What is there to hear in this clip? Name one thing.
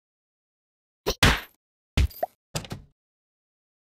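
A cartoon punching bag thuds under quick blows.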